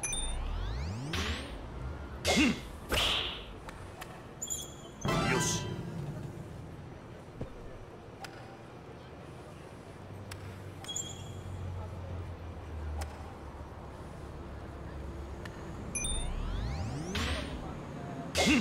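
A golf club swishes through the air.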